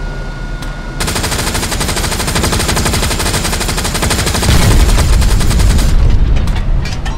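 A tank's tracks clatter and roar loudly as it drives.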